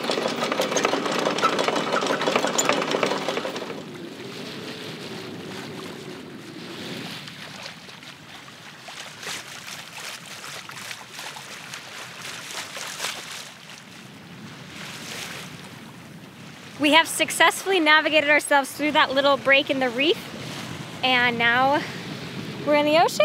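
Water laps against a boat's hull.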